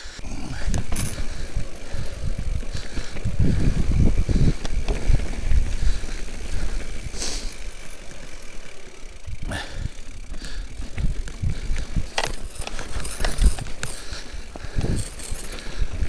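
A bike's frame and chain clatter over bumps.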